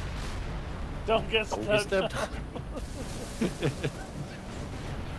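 A heavy gun fires in loud, rapid bursts.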